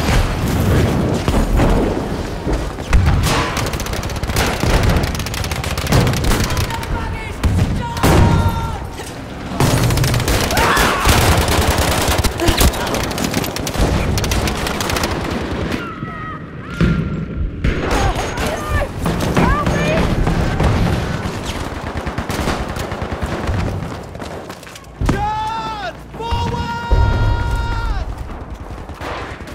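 Gunfire crackles and booms in rapid bursts.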